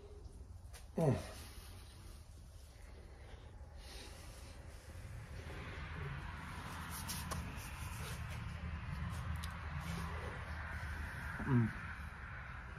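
A man hums a long, falling sound of pleasure close by.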